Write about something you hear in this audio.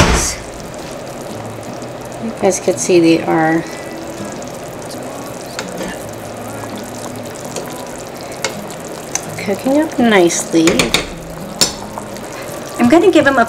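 Water bubbles and simmers in a pot.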